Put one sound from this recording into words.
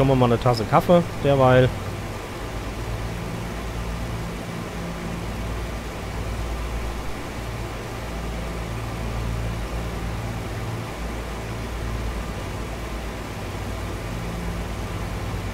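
Aircraft engines drone steadily with a low hum.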